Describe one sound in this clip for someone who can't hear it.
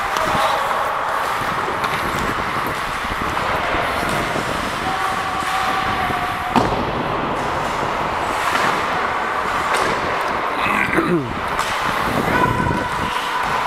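Ice skates scrape and hiss across the ice, echoing in a large hall.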